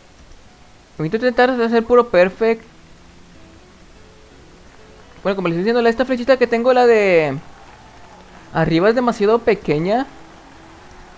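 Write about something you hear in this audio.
An acoustic guitar plays short melodic phrases.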